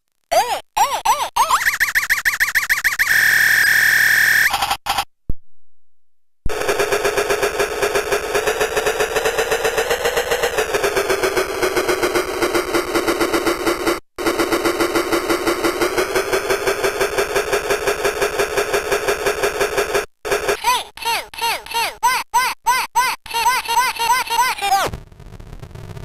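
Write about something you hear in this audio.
A synthesizer plays buzzy, glitchy electronic tones that warble and bend in pitch.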